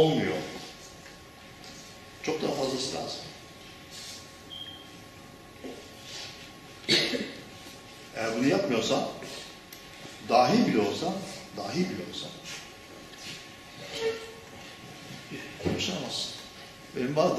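An elderly man lectures with animation.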